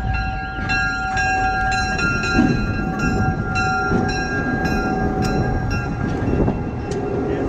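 Steel wheels grind and squeal on the rails.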